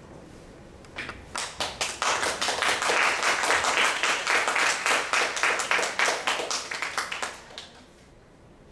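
An audience claps and applauds.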